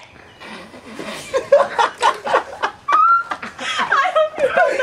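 A young person laughs and shouts close by.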